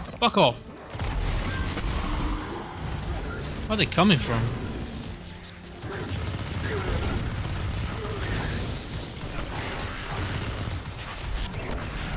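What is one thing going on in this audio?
Gunfire crackles in a video game.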